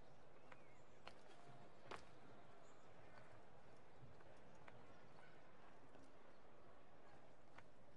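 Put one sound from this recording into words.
Footsteps patter across roof tiles.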